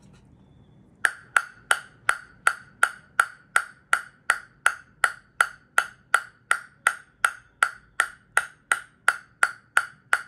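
A table tennis ball bounces steadily on a wooden paddle with sharp, hollow clicks.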